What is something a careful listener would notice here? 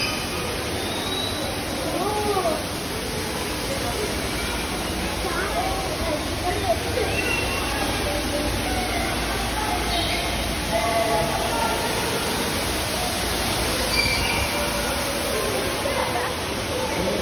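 Birds chirp and call throughout a large echoing hall.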